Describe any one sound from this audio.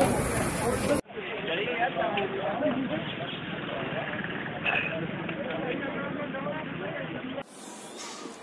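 A group of men talk outdoors.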